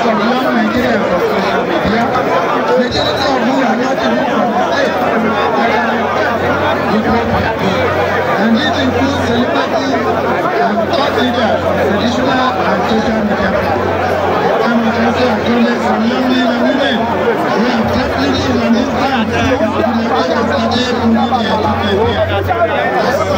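A large outdoor crowd chatters and shouts loudly all around.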